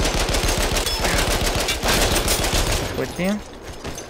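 A heavy machine gun fires a rapid, loud burst.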